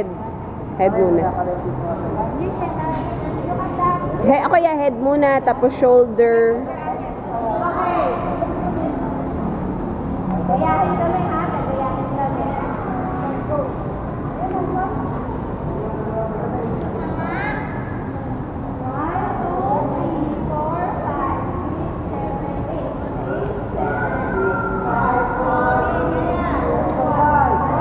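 Children chatter and shout in a large echoing hall.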